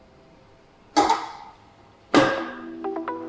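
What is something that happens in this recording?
Heavy metal weight plates clank against a rack.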